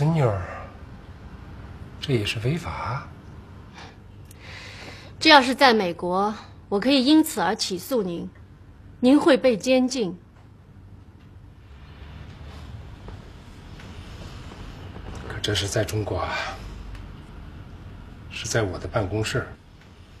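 A middle-aged man speaks calmly and firmly.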